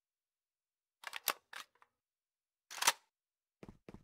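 A rifle magazine clicks as it is changed.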